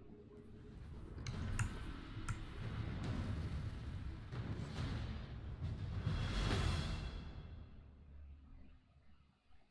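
A spaceship engine roars and whooshes past.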